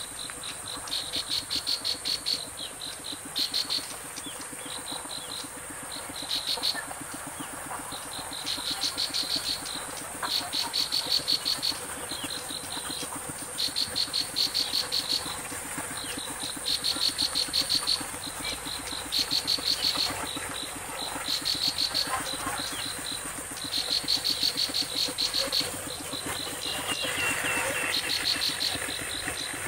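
A small bird sings a fast, repeated buzzing trill in short bursts, close by.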